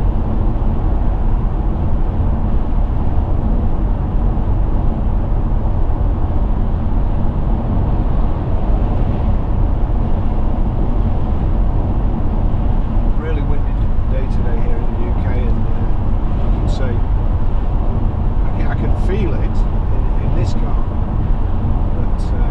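A car engine hums steadily with a low road rumble at motorway speed.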